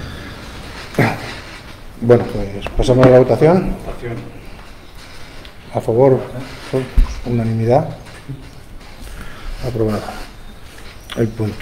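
A man speaks calmly through a microphone in a room with a slight echo.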